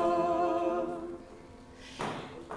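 A congregation holds a last sung note in a large echoing hall.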